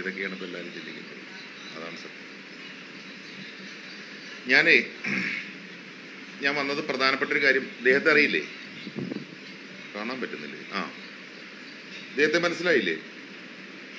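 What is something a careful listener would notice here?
A middle-aged man speaks calmly and close up, in short bursts with pauses.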